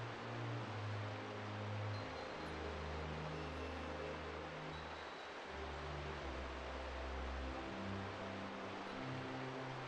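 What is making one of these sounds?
Calm game music plays with slow, deep notes.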